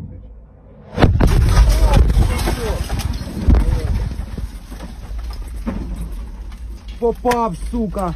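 A loud explosion booms nearby and rumbles on.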